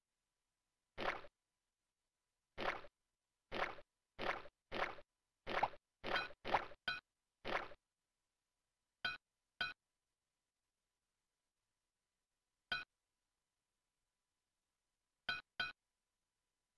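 Short game chimes ring out one after another as coins are picked up.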